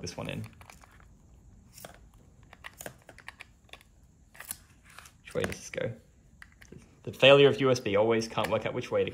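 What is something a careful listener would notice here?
A small plastic device clicks and rattles.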